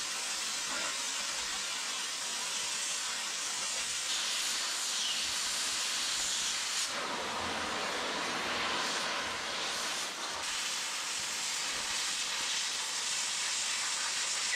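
A plasma torch hisses steadily as it cuts through metal.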